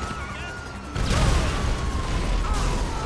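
An explosion booms loudly close by.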